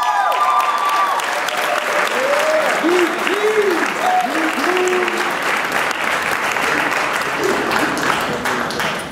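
Men and women in a crowd cheer and whoop.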